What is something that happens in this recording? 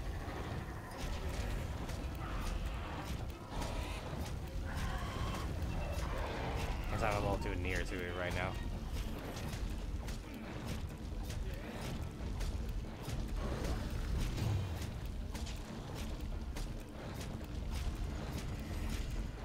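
Blades clang and slash against a monster's hide in quick, repeated blows.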